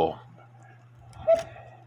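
A hand clicks against metal clock parts.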